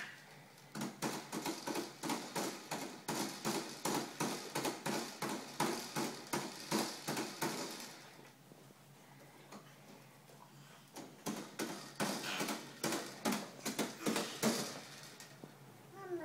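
A toddler rapidly slaps and pats a plastic toy.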